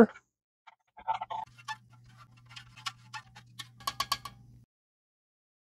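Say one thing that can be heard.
A spoon stirs and scrapes inside a metal cup.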